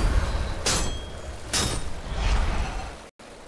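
A blade whooshes through the air in quick, sharp swipes.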